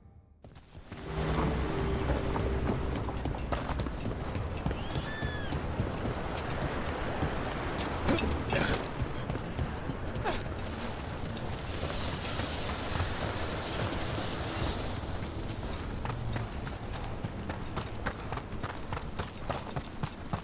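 Footsteps hurry over stone and earth.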